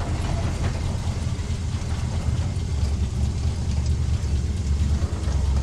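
An old car engine idles with a deep, steady rumble.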